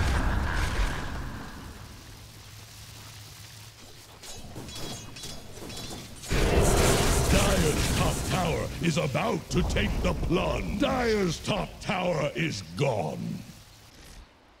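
Magic spells crackle and blast during a battle in a video game.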